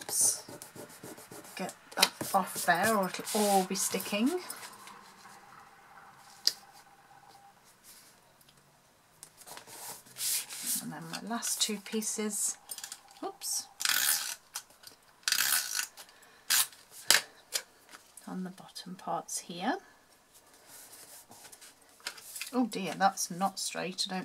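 Paper rustles and slides as hands handle it.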